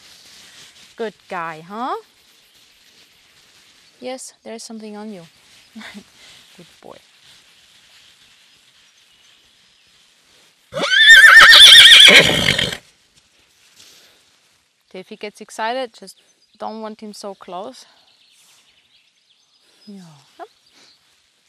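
A young woman speaks calmly, close by, in short phrases.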